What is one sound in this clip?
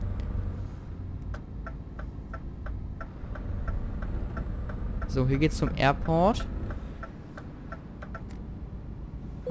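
A turn signal ticks evenly.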